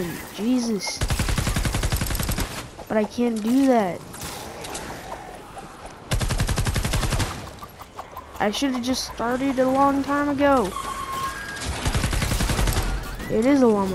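Rapid bursts of gunfire rattle in quick succession.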